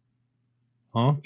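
A man speaks up close into a microphone.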